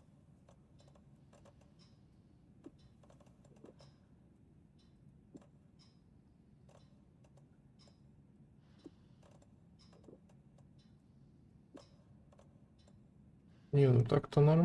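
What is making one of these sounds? Soft interface clicks tick at intervals.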